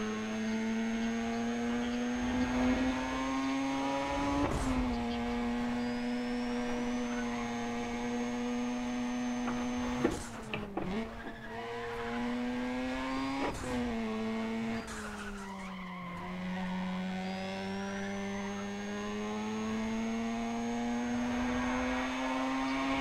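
A racing car engine drones at high revs, dropping in pitch as it shifts gears.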